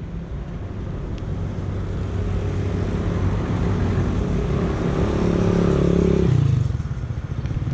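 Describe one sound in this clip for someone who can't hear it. A car drives past on a road, growing louder and then fading.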